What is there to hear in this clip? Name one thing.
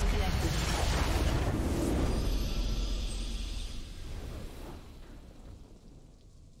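A triumphant game fanfare swells and slowly fades out.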